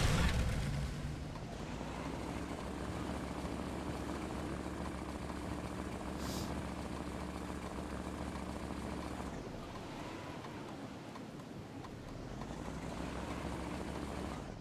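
A small engine drones steadily.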